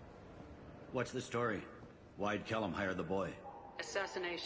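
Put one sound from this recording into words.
A man asks questions in a firm voice.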